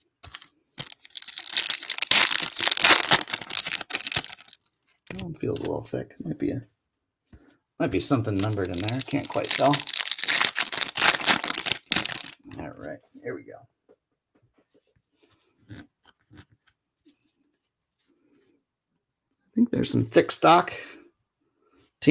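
A foil pack wrapper crinkles and rustles up close.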